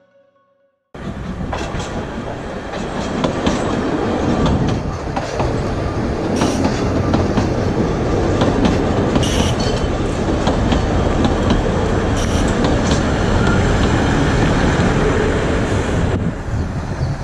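A small train rumbles past on its rails, wheels clattering.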